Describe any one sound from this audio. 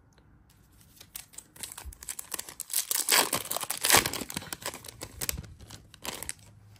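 A foil pack crinkles and tears open.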